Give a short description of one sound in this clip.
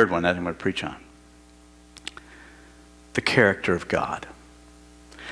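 A middle-aged man speaks with emphasis through a microphone in a large echoing room.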